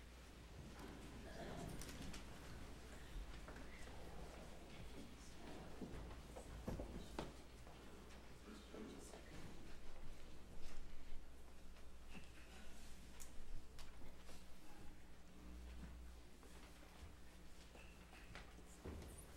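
A crowd of adults murmurs and chats quietly in a large echoing hall.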